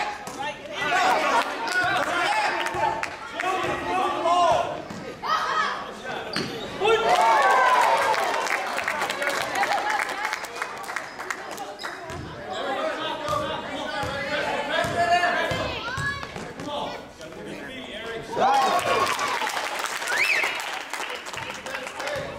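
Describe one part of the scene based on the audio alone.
Children shout and cheer throughout a large echoing gym.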